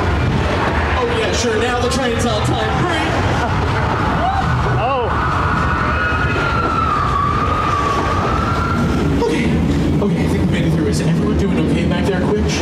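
A young woman talks excitedly nearby.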